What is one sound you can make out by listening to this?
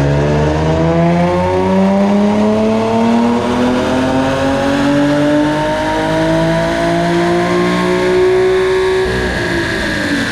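A car engine roars loudly, its pitch climbing steadily as it revs up, then drops off.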